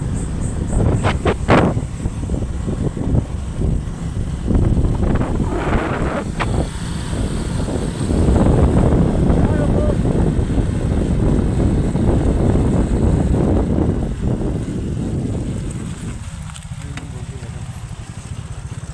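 Wind rushes loudly over the microphone.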